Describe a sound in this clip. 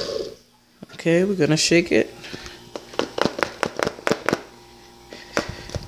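A plastic blender cup clicks and knocks as it is twisted off the base.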